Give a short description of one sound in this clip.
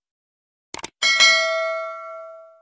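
A small bell rings once and slowly fades.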